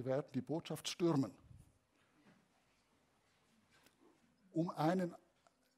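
A man lectures calmly through a microphone, with pauses.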